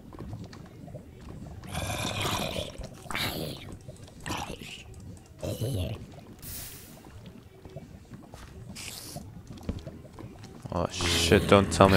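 A zombie groans.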